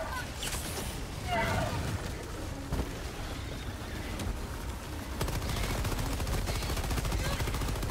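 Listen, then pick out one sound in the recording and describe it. Rapid gunfire rattles steadily.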